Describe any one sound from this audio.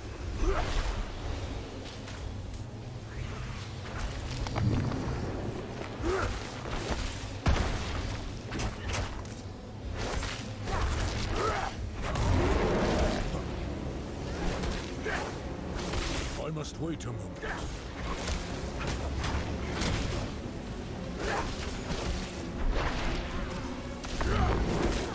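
Blows strike and crash over and over in a frantic fight.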